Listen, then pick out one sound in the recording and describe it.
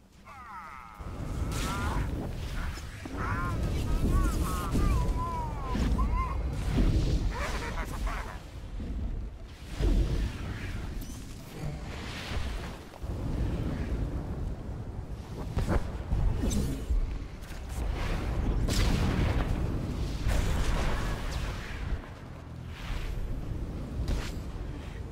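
Game sword strikes clash and hum in a busy fight.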